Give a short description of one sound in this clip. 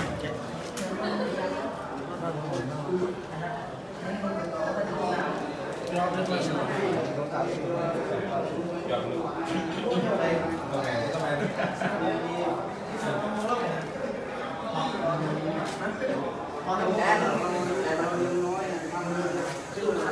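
Several men talk nearby.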